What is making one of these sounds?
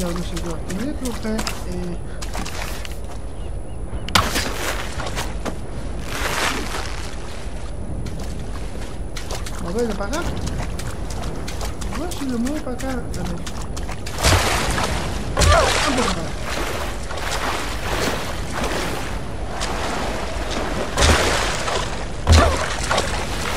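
Surf washes and roars steadily outdoors.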